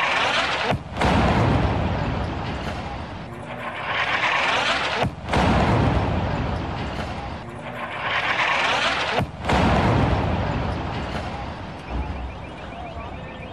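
Powerful explosions boom and rumble close by, rolling on for seconds after each blast.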